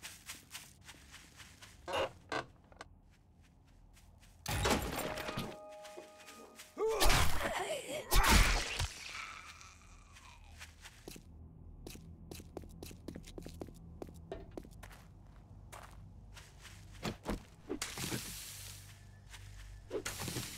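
Footsteps crunch steadily over ground.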